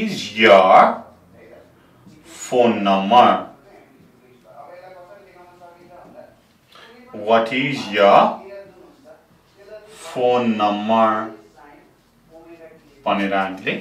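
A young man speaks clearly and steadily, close by, with pauses between phrases.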